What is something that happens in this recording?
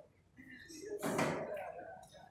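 Pool balls clack together as a cue strikes.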